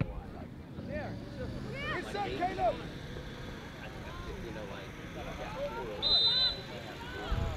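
Young players call out across an open field in the distance.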